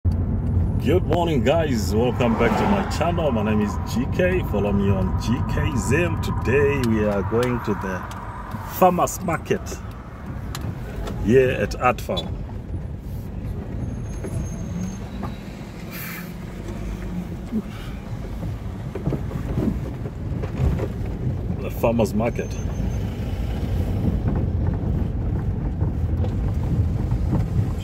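A car engine hums steadily as tyres roll over the road.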